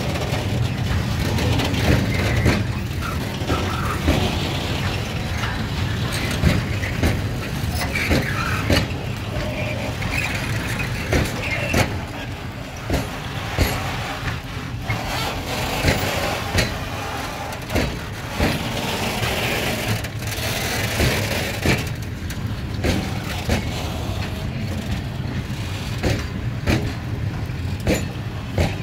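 Metal wagons squeal and screech on the rails.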